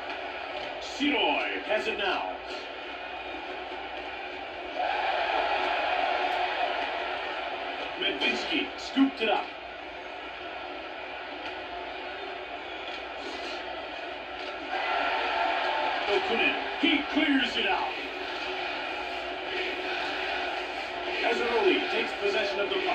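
An arena crowd murmurs and cheers through a television loudspeaker.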